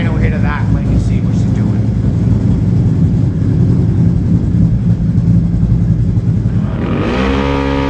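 An engine idles with a low, rough rumble.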